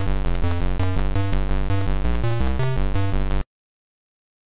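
Chiptune game music plays in a quick beeping rhythm.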